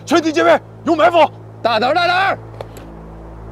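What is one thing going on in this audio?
A young man calls out urgently.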